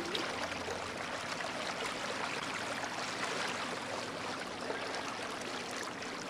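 A boat glides through water with steady splashing and rippling.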